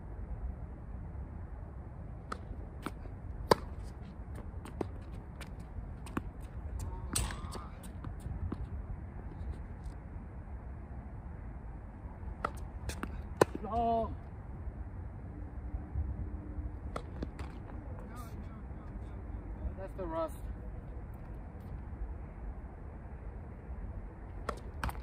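Paddles hit a ball with sharp pops, back and forth.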